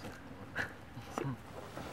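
Footsteps crunch on mossy ground and twigs.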